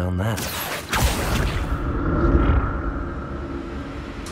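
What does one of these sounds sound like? A magic spell bursts with a bright whoosh.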